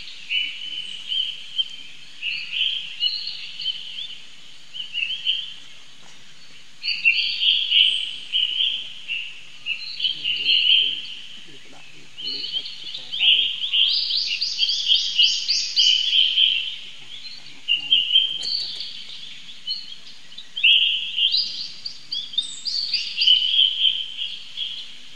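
A baby monkey squeals and cries in high, piercing bursts.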